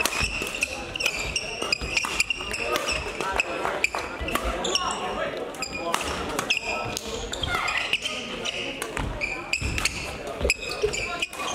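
Shoes squeak sharply on a hall floor.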